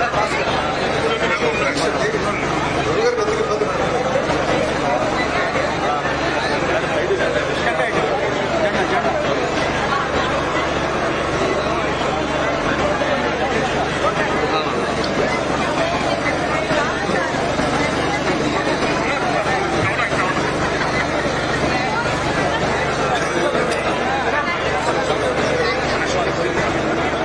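A dense crowd of men and women chatters loudly all around, close by.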